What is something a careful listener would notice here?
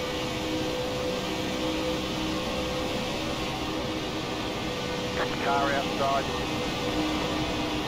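A race car engine roars steadily at high speed.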